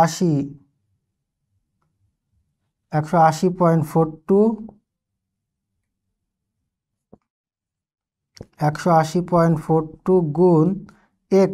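A young man speaks calmly and clearly into a close microphone, in short bursts with pauses.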